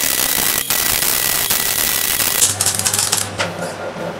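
An arc welder crackles on steel.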